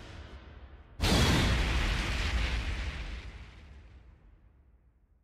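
A heavy impact booms and rings out.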